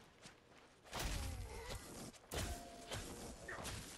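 Heavy blows strike a body with wet thuds.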